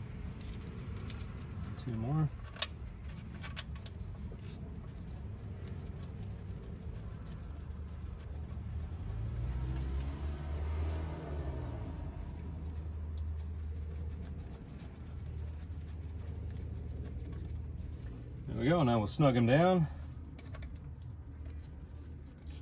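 Metal parts clink and click as hands work on an engine.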